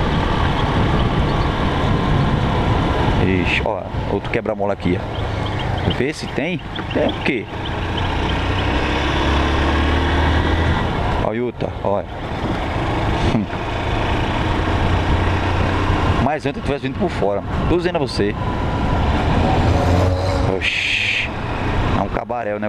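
A motorcycle engine hums and revs as it rides along.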